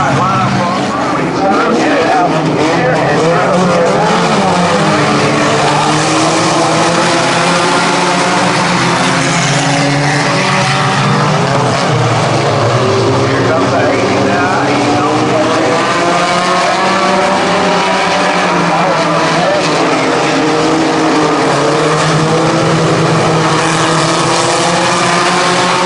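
Many race car engines roar loudly and rise and fall in pitch.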